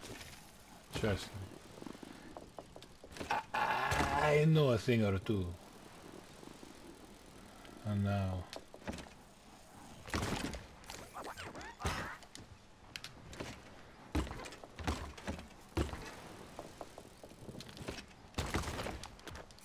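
A bicycle lands with sharp thuds.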